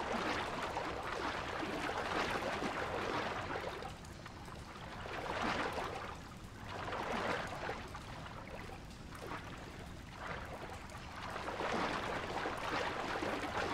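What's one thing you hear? Rushing water surges and roars in waves.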